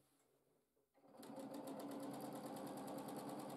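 A sewing machine stitches rapidly with a steady whirring hum.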